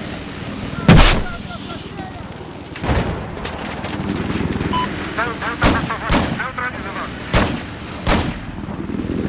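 Gunshots crack sharply several times.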